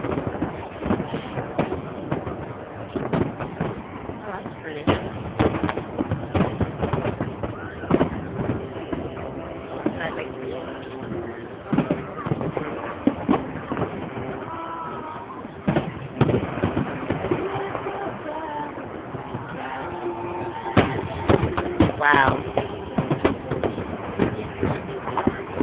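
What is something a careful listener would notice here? Fireworks bang and crackle outdoors, with booms echoing one after another.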